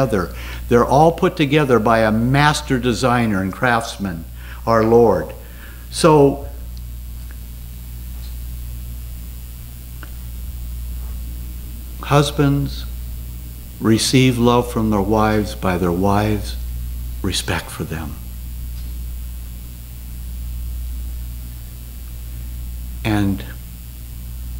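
An older man speaks calmly into a microphone over a loudspeaker, with long pauses.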